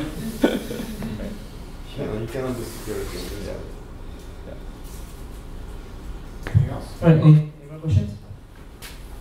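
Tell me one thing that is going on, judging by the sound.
A man speaks calmly, heard from across a room.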